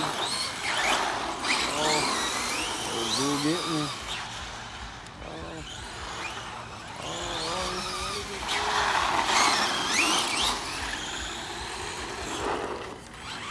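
Small plastic tyres rumble and skid on rough asphalt.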